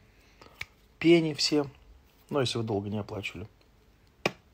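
A young man talks calmly and close to the microphone, in short bursts.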